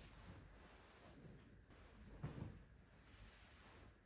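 A bedsheet rustles as it is shaken out.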